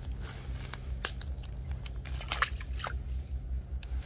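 Fish splash into shallow water.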